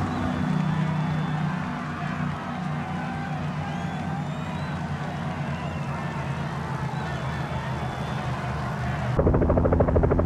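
A motorbike engine hums nearby.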